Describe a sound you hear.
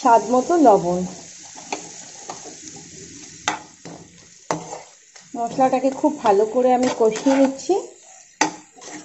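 Oil sizzles and bubbles in a frying pan.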